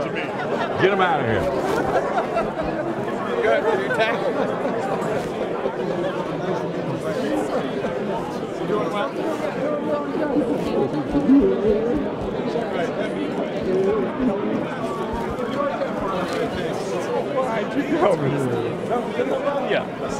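A crowd of men and women chatter loudly all around in a large room.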